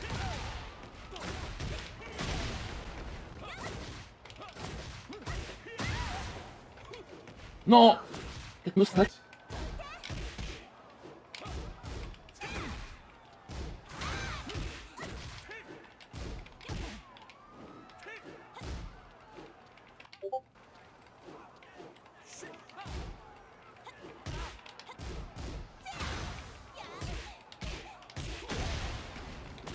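Punches and kicks land with sharp thuds and smacks in a fighting game.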